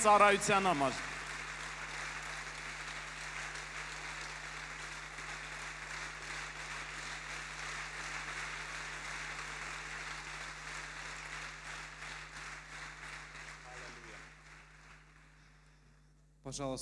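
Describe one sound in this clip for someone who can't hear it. A crowd applauds steadily and then fades out.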